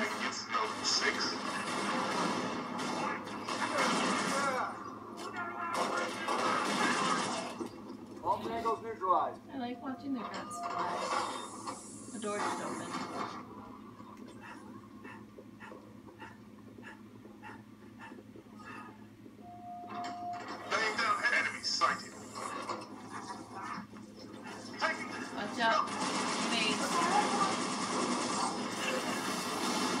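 Energy weapons fire in rapid bursts from a video game.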